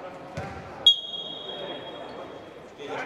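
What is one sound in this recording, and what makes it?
A referee blows a sharp whistle in a large echoing hall.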